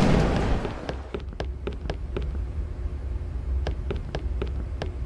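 Footsteps tap along a hard floor in a quiet corridor.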